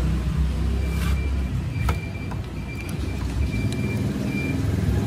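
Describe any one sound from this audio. Small plastic and metal parts click and rattle as they are handled up close.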